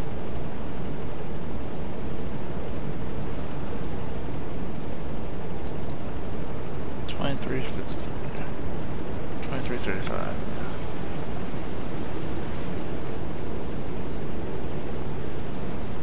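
Waves wash steadily against a boat's hull at sea.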